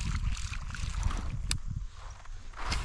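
A fishing lure splashes across the surface of calm water.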